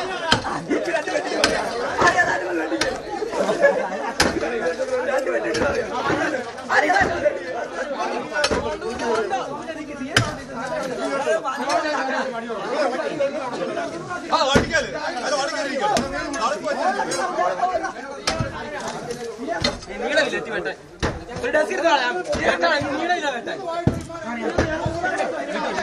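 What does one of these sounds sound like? Metal bars strike and knock against a brick wall again and again.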